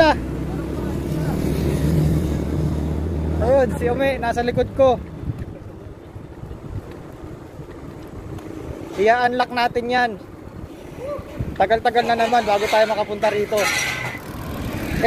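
Bicycle tyres roll on a paved road.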